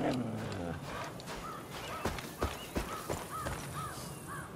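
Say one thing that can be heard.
A dog whines softly nearby.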